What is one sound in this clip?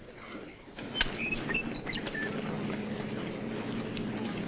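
Many boots tramp on the ground as a column of soldiers marches.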